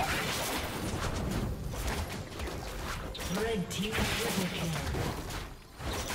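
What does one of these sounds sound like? Sharp hits and blasts clatter in quick succession.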